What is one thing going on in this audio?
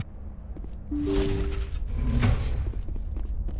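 A heavy metal door slides open with a mechanical whoosh.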